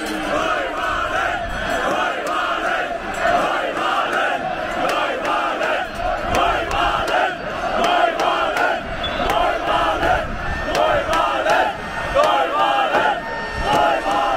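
Many people in a crowd talk and shout at once.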